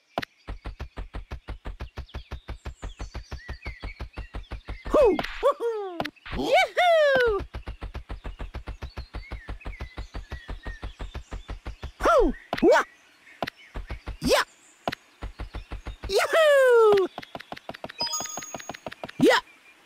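Quick cartoon footsteps patter in a fast, even rhythm.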